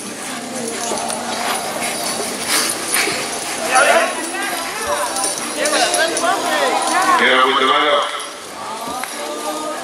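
A crowd chatters and calls out loudly outdoors.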